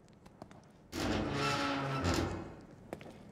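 A door creaks and bangs open.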